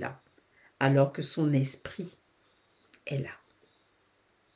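A woman speaks with animation close to a microphone.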